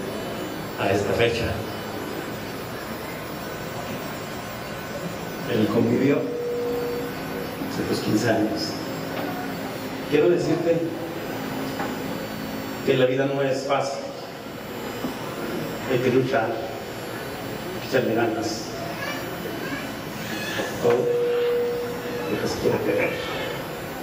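A middle-aged man speaks into a microphone over loudspeakers in a large echoing hall, in short bursts with pauses.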